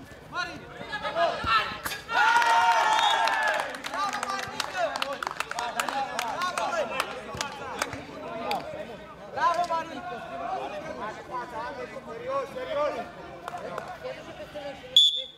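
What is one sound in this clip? Young men shout and talk excitedly nearby.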